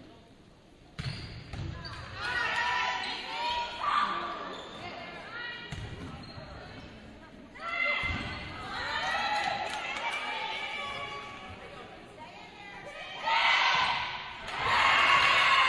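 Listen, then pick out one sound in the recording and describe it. Young women players shout calls across an echoing court.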